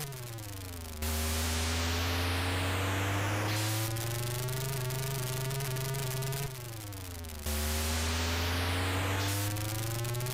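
Video game tyres hiss and screech during drifts.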